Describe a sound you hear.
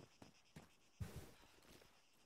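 A heavy body thuds onto the ground.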